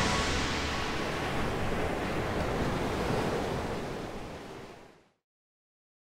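Waves crash and surge against rocks.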